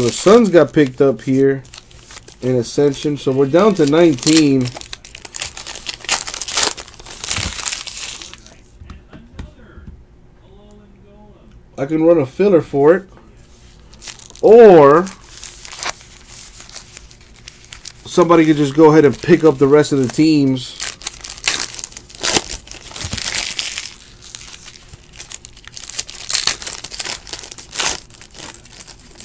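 A foil wrapper crinkles and rustles between fingers.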